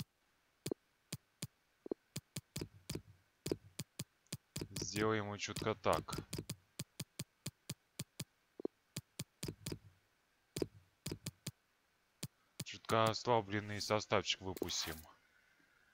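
Short menu clicks tick again and again as selections change.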